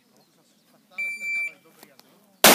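An electronic timer beeps once.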